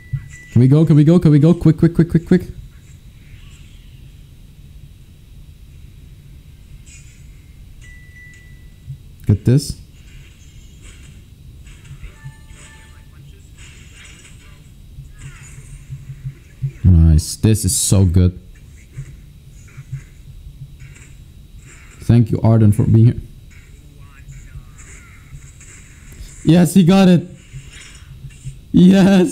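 A young man talks in short bursts with animation, close to a microphone.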